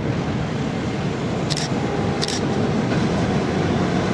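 A tram approaches, rumbling louder as it nears.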